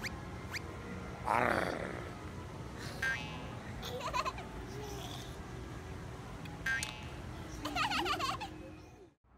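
A baby giggles softly.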